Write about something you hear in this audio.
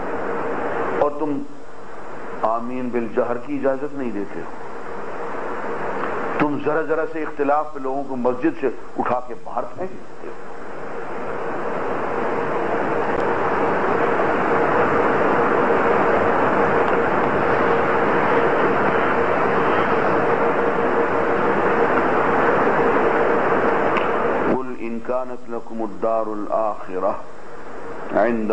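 An elderly man speaks with animation into a microphone, heard through a loudspeaker.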